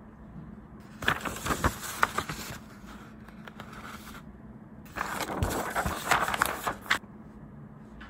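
Paper pages rustle as they are flipped.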